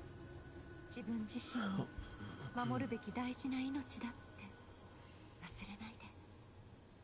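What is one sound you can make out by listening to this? A young woman speaks softly and warmly.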